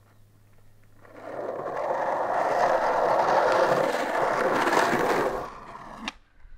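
Skateboard wheels roll loudly over rough concrete.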